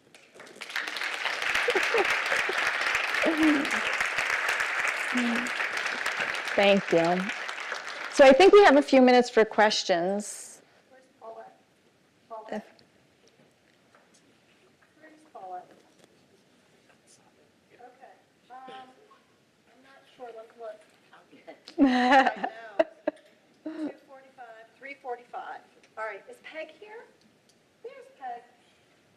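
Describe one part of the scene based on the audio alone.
A woman speaks calmly into a microphone in a large room.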